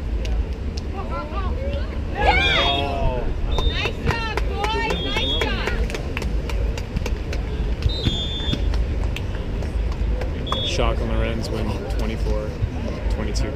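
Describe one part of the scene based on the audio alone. Players call out loudly to each other outdoors.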